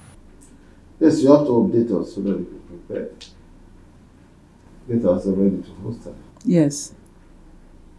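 An older man speaks slowly in a deep voice.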